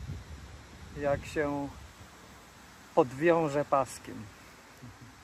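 A man speaks casually close to the microphone.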